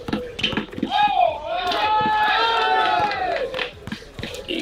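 A crowd of young people shouts and cheers outdoors.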